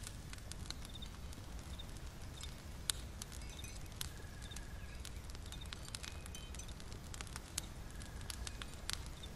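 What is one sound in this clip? A small fire crackles and pops close by.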